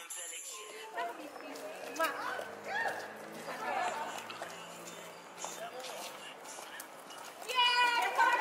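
Young women chatter and laugh nearby.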